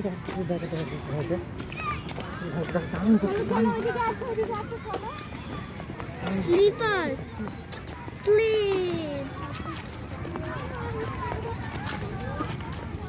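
Adults talk casually nearby.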